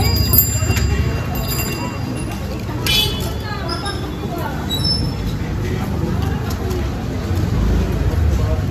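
A busy street crowd murmurs all around outdoors.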